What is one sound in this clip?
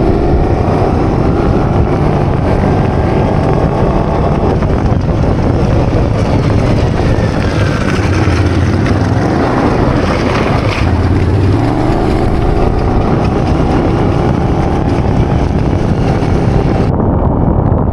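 A small engine drones loudly close by, rising and falling in pitch.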